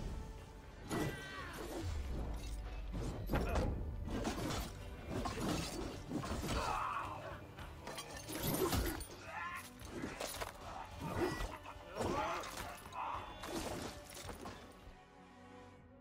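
Blades clash and thud in a fierce fight.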